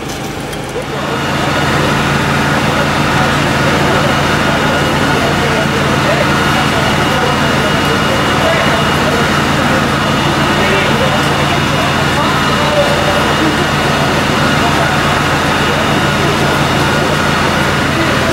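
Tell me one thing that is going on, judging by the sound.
A vehicle engine idles steadily nearby.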